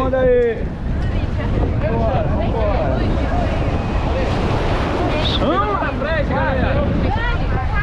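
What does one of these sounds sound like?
Water splashes and rushes against an inflatable boat.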